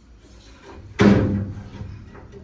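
A plastic meter knocks against a metal grate.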